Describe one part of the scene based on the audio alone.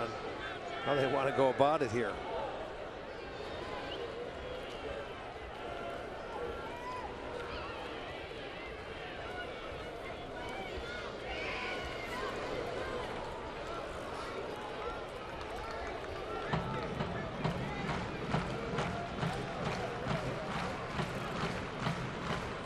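A large crowd murmurs in an open stadium.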